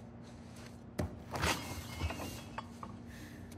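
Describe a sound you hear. A fridge door opens with a thud and rattle.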